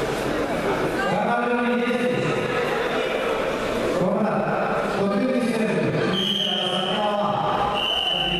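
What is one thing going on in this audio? Several men shout loudly from the crowd.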